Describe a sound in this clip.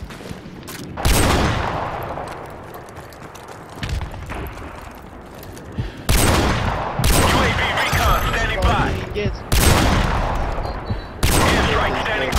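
A heavy rifle fires loud, booming shots that echo away.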